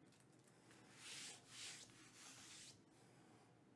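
A hand brushes across a tabletop.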